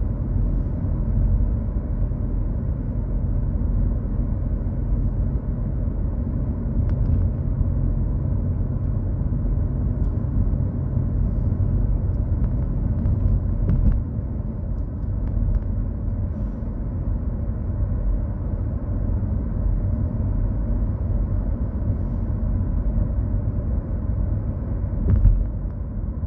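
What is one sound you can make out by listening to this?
A car's engine hums steadily from inside as it drives along.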